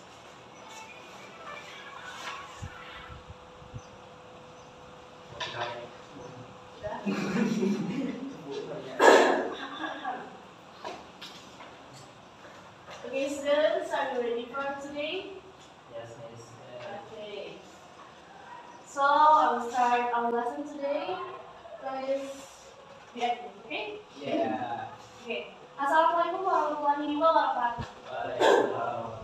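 A young woman speaks steadily, heard from across an echoing room.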